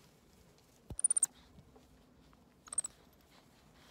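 A small monkey gives high squeaks.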